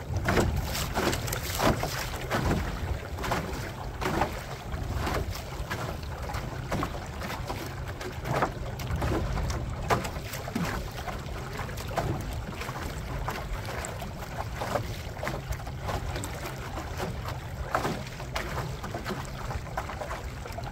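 Small waves slap against the hull of a moving boat.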